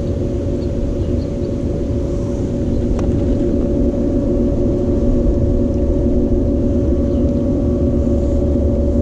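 A pool pump hums steadily.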